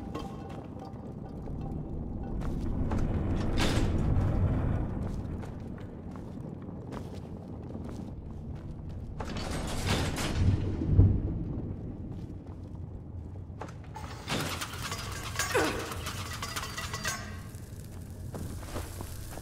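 A torch flame crackles close by.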